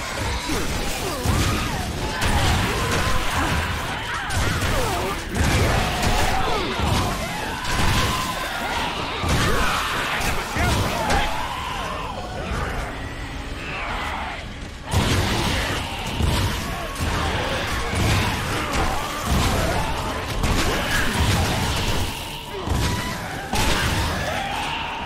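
Gunfire and explosions boom in rapid bursts.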